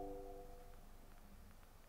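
A young woman sings softly into a microphone, and the note fades away.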